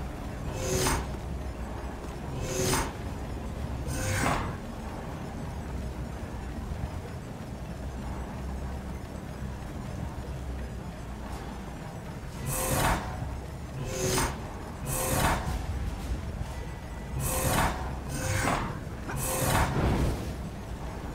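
Flames whoosh and roar in short, repeated bursts.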